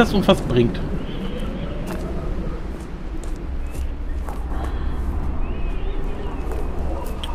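A man speaks casually and close to a microphone.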